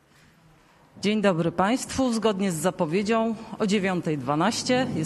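A man speaks calmly into a microphone, heard through a loudspeaker in a large room.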